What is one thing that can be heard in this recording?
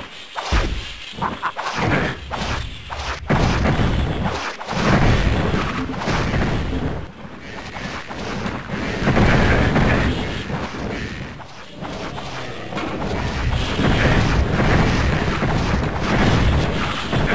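Winged monsters screech and snarl.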